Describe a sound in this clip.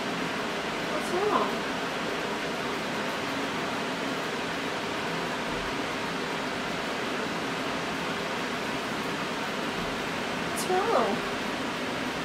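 A kitten mews softly.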